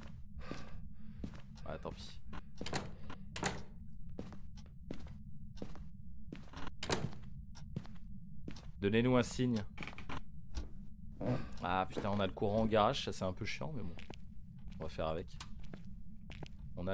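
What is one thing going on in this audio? A young man talks into a close microphone, with animation.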